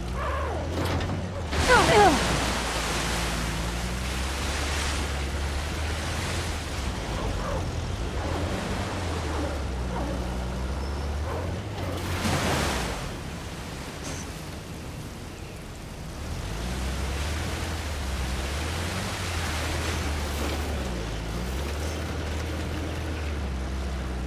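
A vehicle engine rumbles steadily, rising and falling in pitch.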